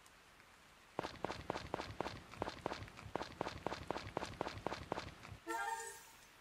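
Footsteps tap quickly and steadily on a wooden floor.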